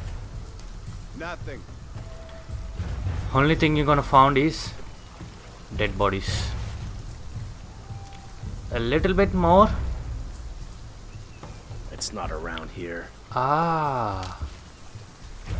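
A young man talks into a microphone in short bursts.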